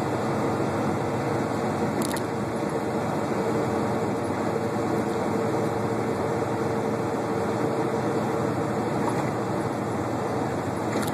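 A semi truck's diesel engine drones, heard from inside the cab.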